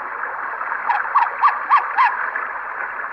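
A small electronic buzzer chirps five times in quick succession.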